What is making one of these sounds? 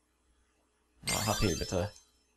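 A short fanfare of chimes plays.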